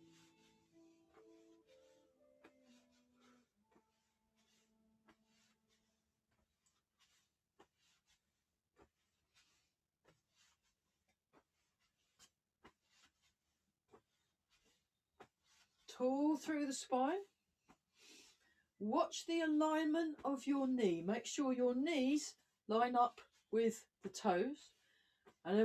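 Bare feet pad softly on a floor.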